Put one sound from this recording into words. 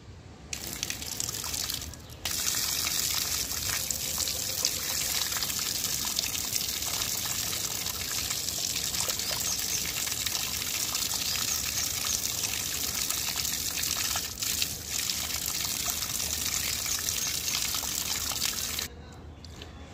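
Water splashes steadily from a tap onto the ground.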